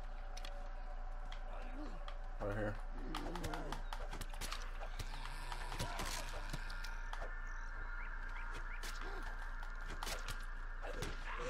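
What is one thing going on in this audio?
Weapon blows strike in a close fight, with sharp thuds.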